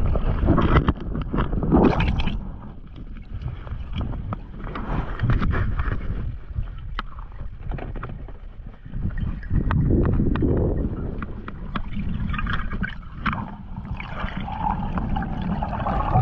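Bubbles gurgle and rush underwater.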